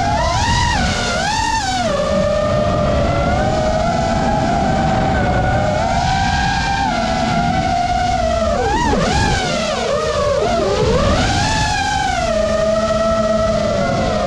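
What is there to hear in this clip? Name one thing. A small drone's motors whine loudly, rising and falling in pitch as it speeds and banks.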